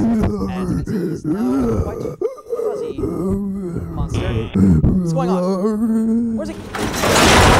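A man sings in a deep, wavering voice nearby.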